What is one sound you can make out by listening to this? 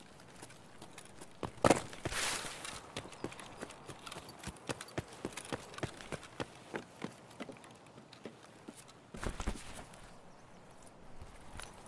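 Footsteps crunch through grass and gravel.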